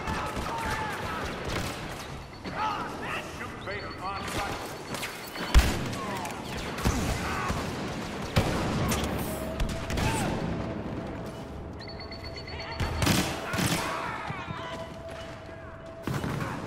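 Blaster guns fire in sharp bursts.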